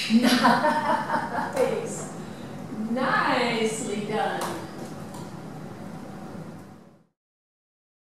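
A woman speaks brightly and encouragingly nearby.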